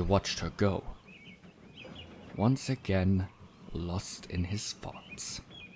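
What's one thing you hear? A man speaks in an anxious, surprised voice.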